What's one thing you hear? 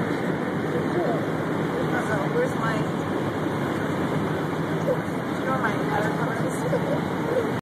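A small child babbles nearby.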